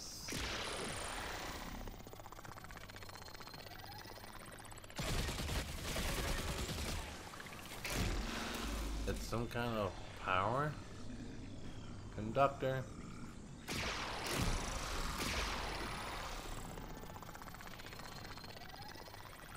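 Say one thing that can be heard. A glowing energy machine hums and crackles.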